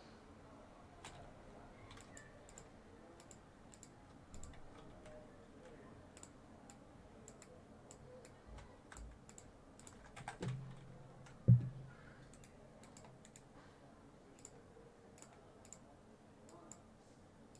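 Short, sharp clicks tap again and again.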